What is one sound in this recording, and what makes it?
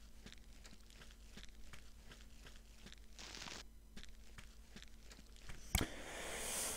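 Footsteps thud steadily on grass.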